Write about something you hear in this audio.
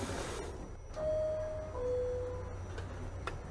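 A two-tone door chime sounds on a subway train.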